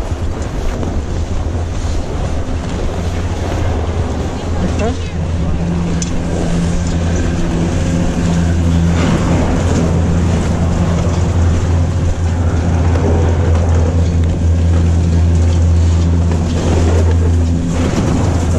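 A chairlift's machinery hums and rumbles steadily.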